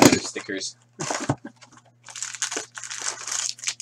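A cardboard flap is pulled open.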